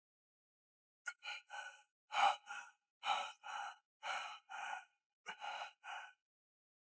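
A man whimpers and sobs quietly.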